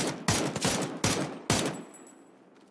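Rifle shots ring out in quick succession.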